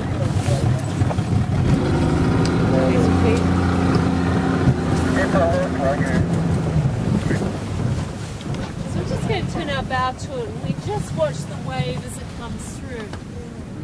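People talk and exclaim excitedly close by.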